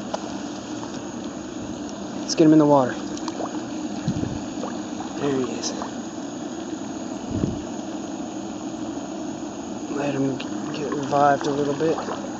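A fish splashes and flaps in water.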